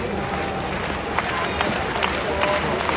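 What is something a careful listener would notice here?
Spectators nearby clap their hands.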